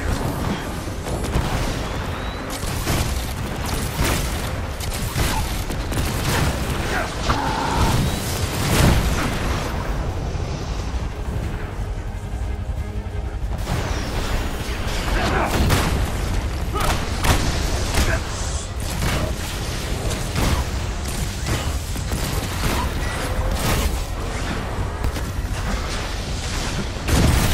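Jet thrusters roar.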